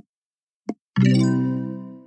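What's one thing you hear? A bright game chime and sparkle effect bursts out as a level is completed.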